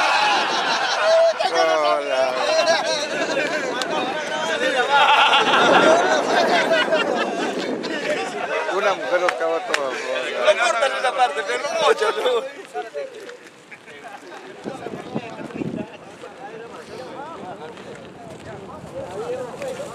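Several men talk and chatter nearby, outdoors.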